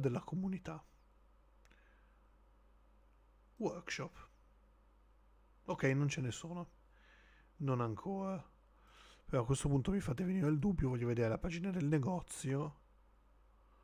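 A man speaks close to a microphone, with animation, in short bursts.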